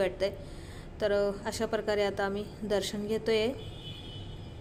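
A woman speaks nearby with animation.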